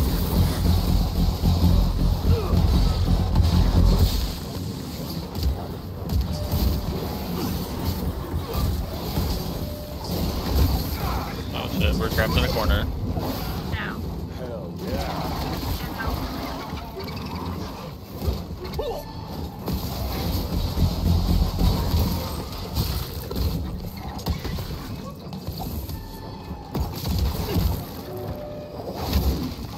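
Electric crackling sounds in a video game fight.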